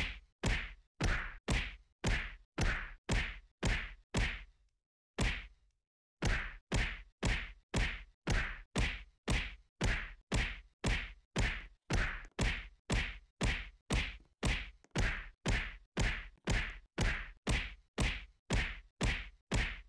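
A game character rapidly punches and kicks a training dummy with repeated thumping hits.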